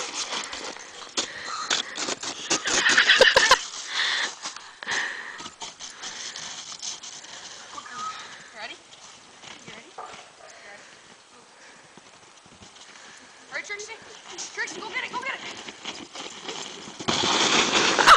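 A plastic sled scrapes and bumps over hard snow.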